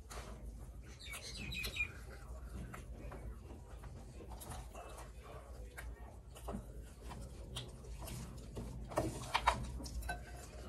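Food crunches and rustles as fingers mix it on a plate.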